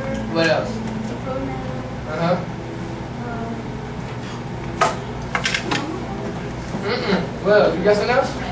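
Children call out and murmur.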